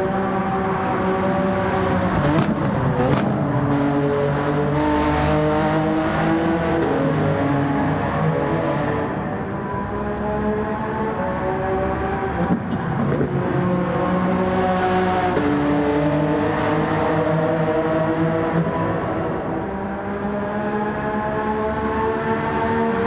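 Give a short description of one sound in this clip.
A racing car engine roars at high revs, shifting gears as it speeds along.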